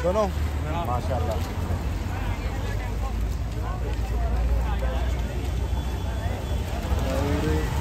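Traffic rumbles steadily on a wet street.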